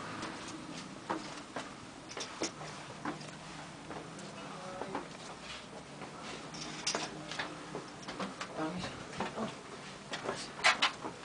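Footsteps scuff and knock on stone in a narrow passage.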